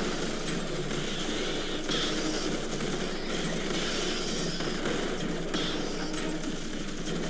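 Gunfire crackles rapidly in a battle.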